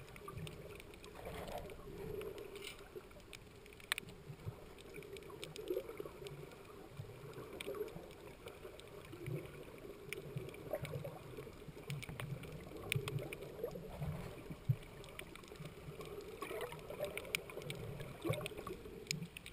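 Underwater ambience with muffled clicks and crackles from the water.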